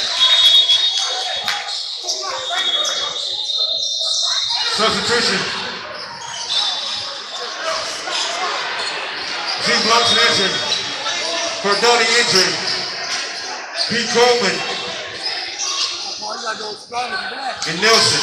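A crowd of people chatter loudly in the background.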